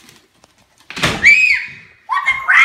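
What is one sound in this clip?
A young girl shrieks with delight close by.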